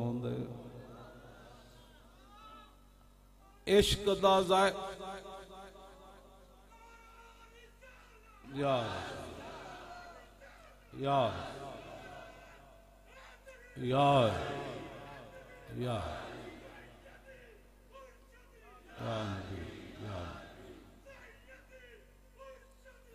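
An elderly man speaks forcefully into a microphone over loudspeakers, in bursts with echoing pauses, in a large reverberant space.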